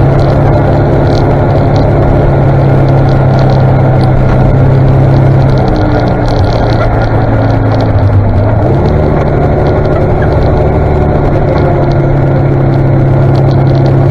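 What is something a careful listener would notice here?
A tractor engine rumbles close ahead.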